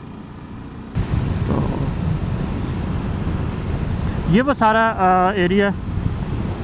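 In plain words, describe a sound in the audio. Wind rushes loudly past a speeding motorcycle.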